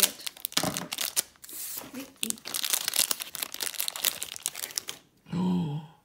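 Plastic foil crinkles and rustles as it is torn open.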